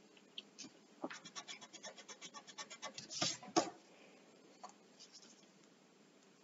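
A pencil scratches across paper in short, rapid strokes.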